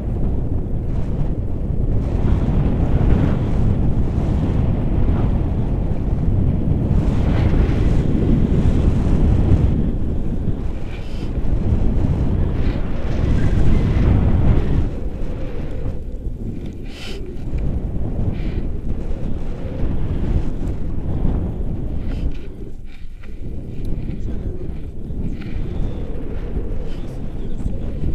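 Wind roars loudly across a microphone outdoors.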